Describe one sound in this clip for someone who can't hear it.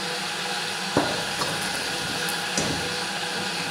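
A metal pot knocks against a metal colander in a sink.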